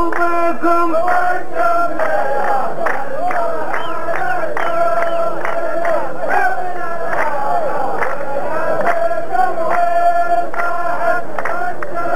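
A large group of men chants together in chorus.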